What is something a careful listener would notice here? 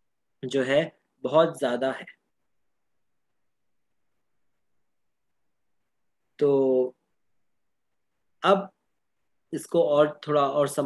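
A young man speaks calmly through an online call, in short bursts with pauses.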